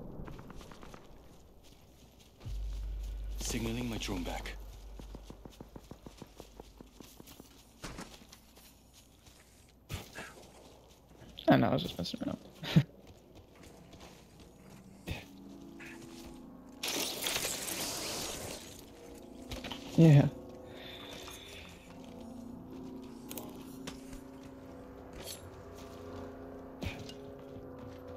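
Footsteps run over grass and hard floors.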